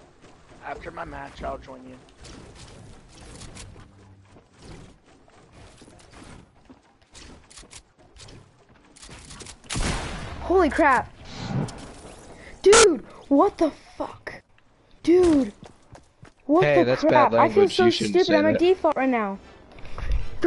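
A teenage boy talks into a microphone.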